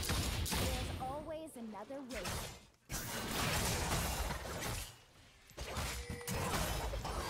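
Game spells and attacks crackle and boom.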